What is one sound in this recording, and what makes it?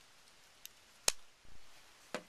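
A folding knife blade snaps shut with a sharp click.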